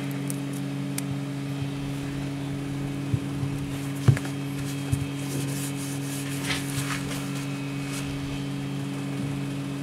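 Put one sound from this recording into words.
Fingers tap and click on a phone.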